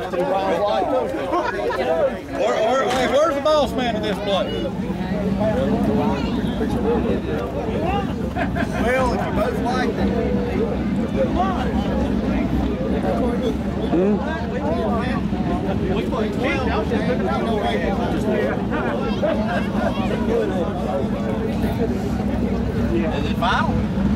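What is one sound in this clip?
A crowd of men and women chatter nearby outdoors.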